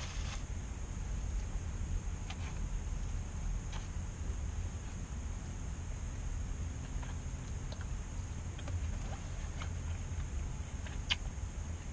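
A fork scrapes and clicks against a plastic bowl.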